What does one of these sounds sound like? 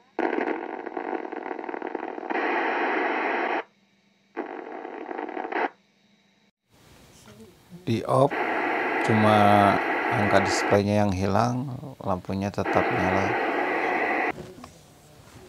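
A mobile VHF transceiver hisses with static from its speaker.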